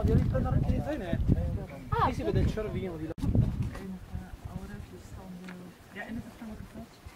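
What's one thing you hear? Men and women chat casually nearby outdoors.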